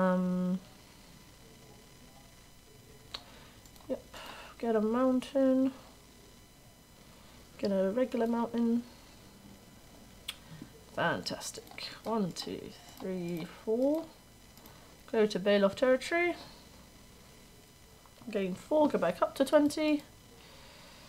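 A young woman talks calmly into a close microphone, in short bursts.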